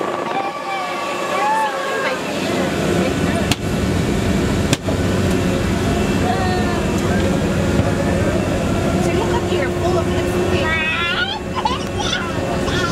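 A submarine's machinery hums inside the hull.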